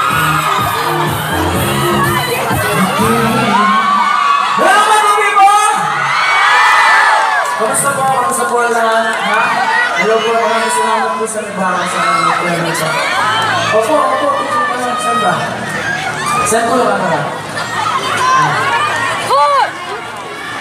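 Music with a beat plays loudly over loudspeakers.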